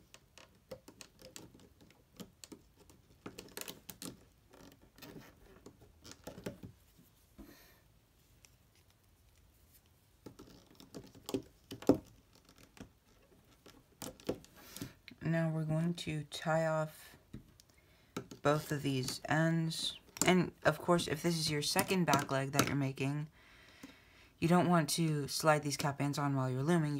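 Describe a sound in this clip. A small plastic hook clicks and taps against plastic loom pegs.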